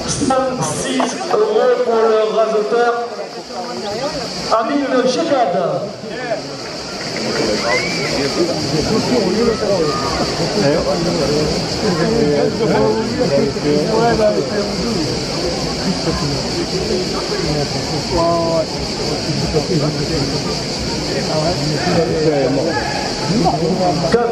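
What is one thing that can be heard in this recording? A large outdoor crowd chatters and calls out throughout.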